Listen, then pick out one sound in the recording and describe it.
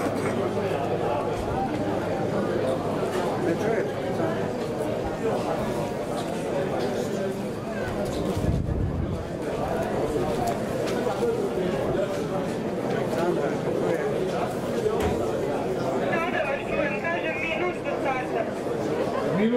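A crowd chatters and murmurs in the distance, outdoors.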